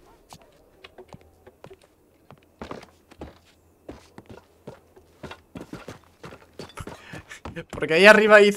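Footsteps tread on a roof.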